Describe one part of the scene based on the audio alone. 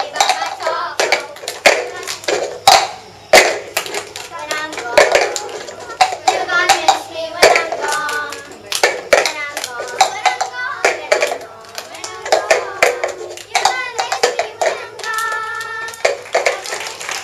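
Young girls sing together.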